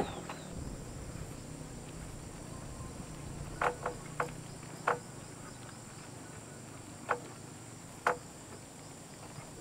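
Footsteps crunch on loose soil.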